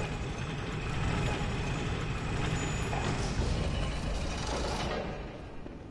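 A heavy lift rumbles and clanks as it moves.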